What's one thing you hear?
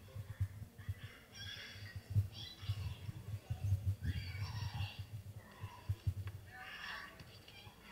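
A young girl screams and cries, heard through a loudspeaker in a room.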